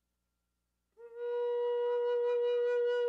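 A wooden flute plays a steady, clear note.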